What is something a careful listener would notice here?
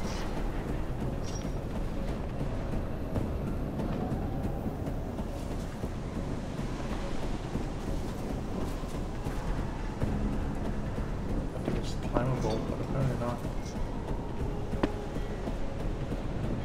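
Soft footsteps shuffle on a hard floor.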